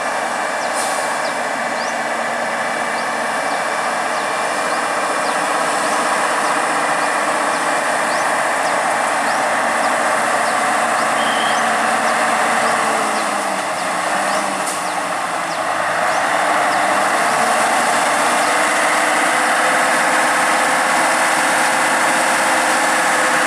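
A small truck engine hums as it approaches.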